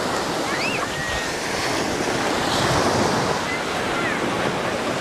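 Waves wash and break onto the shore close by.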